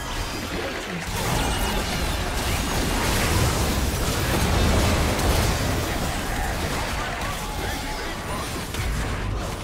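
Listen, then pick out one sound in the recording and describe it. Game weapons clash and strike with sharp hits.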